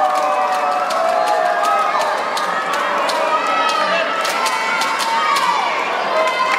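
Young women cheer and shout together in a large echoing hall.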